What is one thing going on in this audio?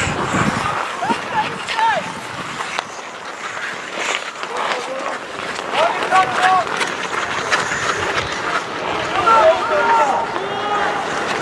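Players shout to each other across the ice in the distance.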